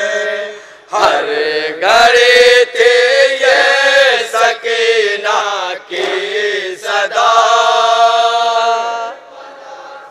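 A crowd of men beat their chests in a steady rhythm.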